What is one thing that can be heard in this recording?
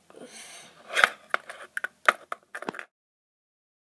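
Small plastic toys clack and knock together.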